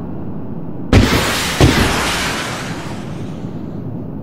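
Rockets whoosh as they launch.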